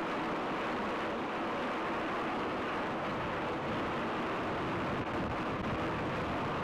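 Broken ice grinds and crackles against a boat's hull.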